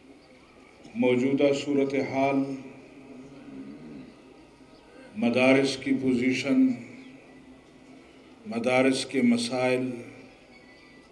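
An elderly man speaks forcefully through a microphone and loudspeakers, in bursts with pauses.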